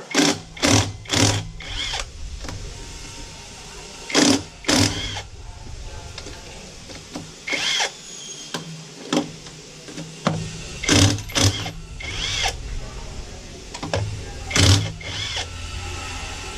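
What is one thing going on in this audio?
A cordless power tool whirs in short, repeated bursts close by.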